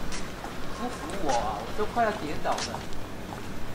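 An elderly woman speaks plaintively close by.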